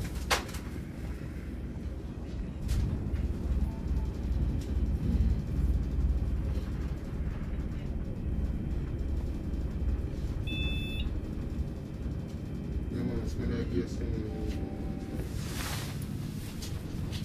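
An elevator hums and rumbles low as it travels.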